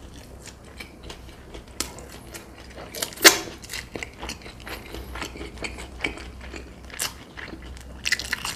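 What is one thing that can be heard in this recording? A man chews crunchy food noisily, close to a microphone.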